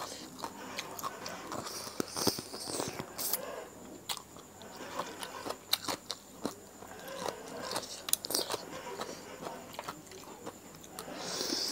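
A woman sucks and slurps on her fingers.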